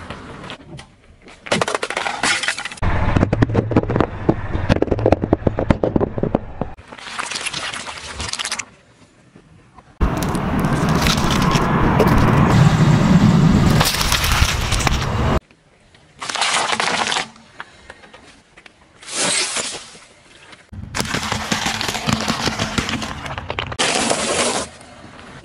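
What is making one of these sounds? Objects crunch and pop under a car tyre.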